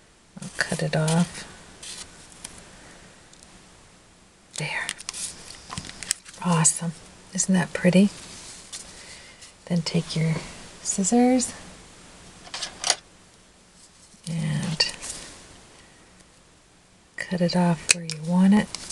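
A stiff paper card rustles and taps softly as it is handled on a tabletop.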